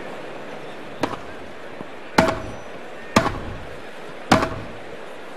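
A tennis ball is hit back and forth with sharp pops.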